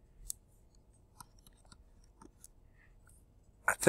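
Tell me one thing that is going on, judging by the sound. A stylus taps and scratches lightly on a tablet.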